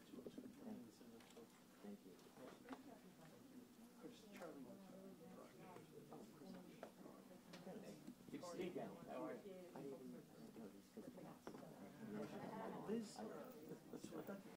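Several adults, both men and women, talk quietly among themselves, heard faintly through a microphone.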